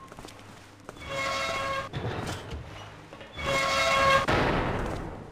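A heavy metal hatch grinds and clanks open.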